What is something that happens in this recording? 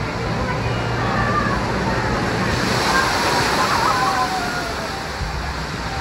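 A huge bucket of water tips and crashes down in a roaring splash.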